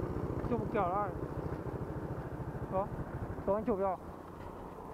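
A motorbike engine putters steadily close by.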